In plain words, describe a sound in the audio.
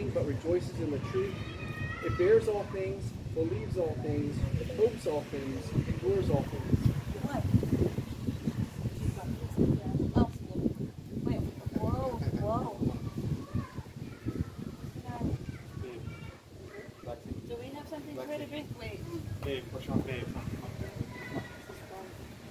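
A man speaks calmly nearby outdoors.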